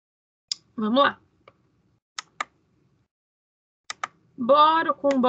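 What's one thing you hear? A woman speaks calmly through an online call, in short bursts.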